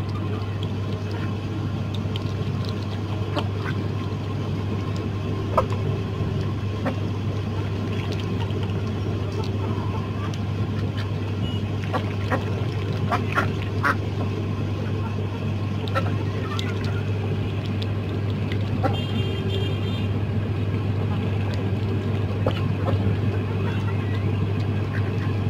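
Chickens cluck softly.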